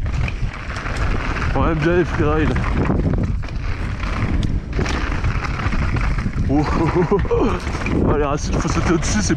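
Wind rumbles loudly against a moving rider.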